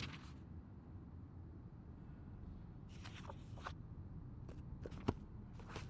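Paper rustles as a journal's pages are handled.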